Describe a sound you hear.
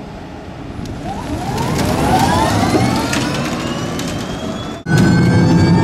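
An electric race car whines as it speeds up, its pitch rising.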